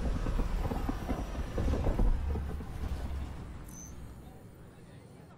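A spaceship engine roars loudly, then fades away.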